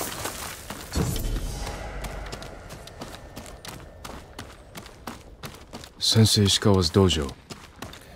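Footsteps thud on grass and stone steps.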